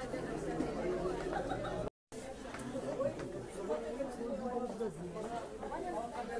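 Several men talk over one another close by.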